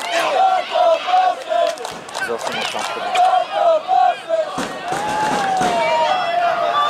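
Spectators and players shout and cheer outdoors across an open field.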